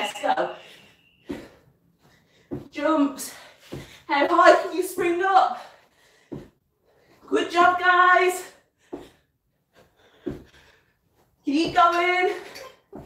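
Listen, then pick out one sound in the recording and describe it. A young woman speaks with energy, close by.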